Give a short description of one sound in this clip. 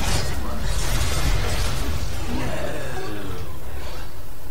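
Spell blasts and weapon hits crackle and clash in a fast fight.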